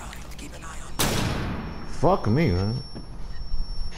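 A loud blast goes off and rings.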